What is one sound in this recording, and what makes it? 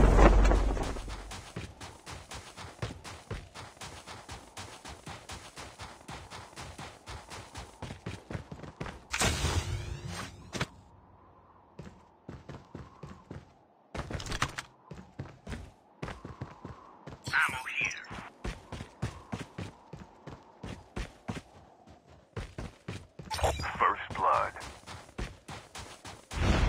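Quick footsteps crunch steadily over hard ground.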